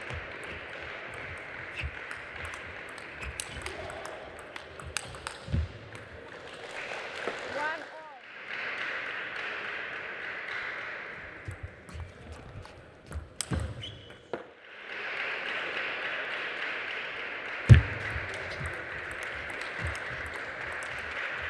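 A ping-pong ball clicks sharply back and forth off paddles and the table.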